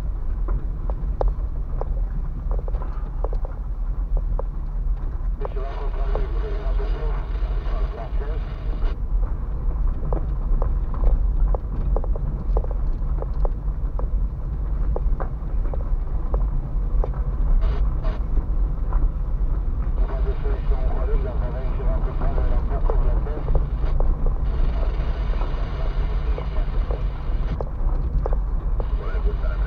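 Tyres crunch and rattle over a rough gravel road.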